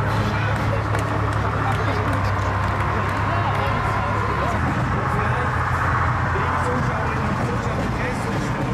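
A crowd murmurs and chatters nearby.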